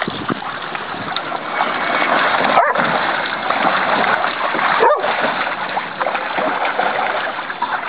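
Water splashes in a shallow pool.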